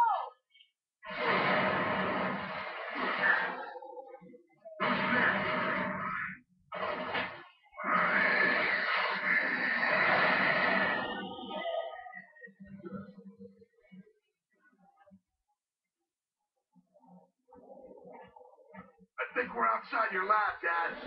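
Loud gunfire and bursts of noise from a video game play through a television's speakers, in noisy bursts separated by short pauses.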